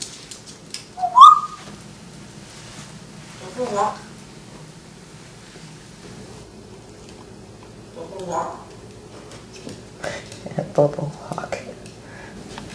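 An African grey parrot whistles and chatters.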